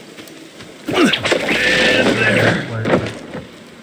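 A weapon swings with a loud whoosh.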